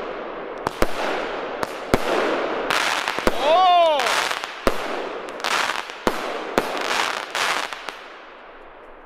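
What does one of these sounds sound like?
Fireworks crackle and fizzle as sparks fall.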